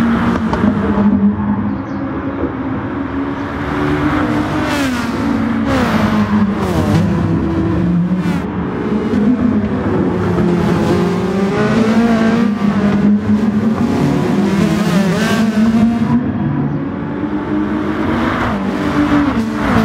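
Racing car engines roar loudly, rising and dropping in pitch as they shift gears.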